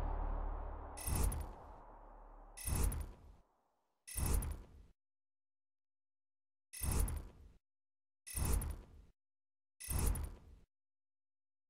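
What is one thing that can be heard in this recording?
Short bright chimes sound one after another at an even pace.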